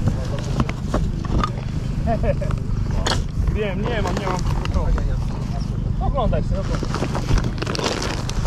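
Hands rummage through crinkly wrappers in a cardboard box, rustling and crackling.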